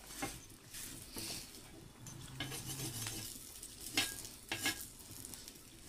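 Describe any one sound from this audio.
A metal ladle scrapes and clinks against a pan.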